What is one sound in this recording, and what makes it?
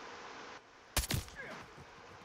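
A rifle fires a single sharp, loud shot.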